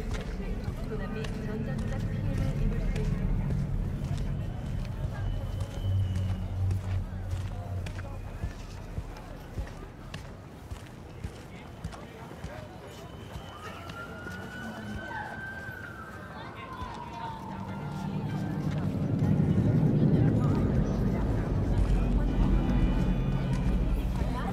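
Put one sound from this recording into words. Footsteps splash on wet pavement.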